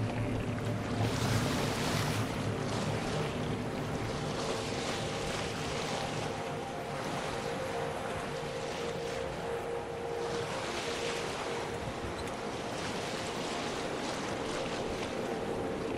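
Rain patters on the sea.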